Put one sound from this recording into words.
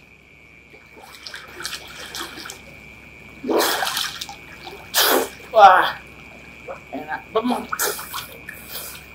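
Water splashes as a man swims.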